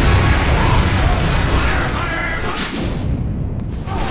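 Fire crackles and roars loudly.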